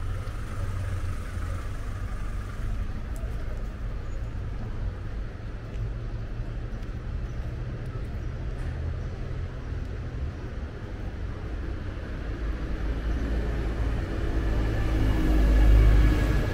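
City traffic rumbles steadily nearby outdoors.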